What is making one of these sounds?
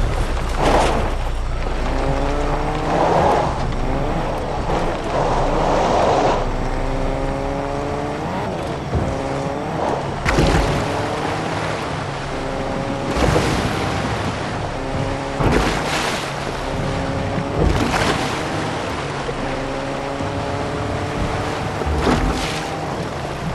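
A car engine revs up and shifts gears repeatedly.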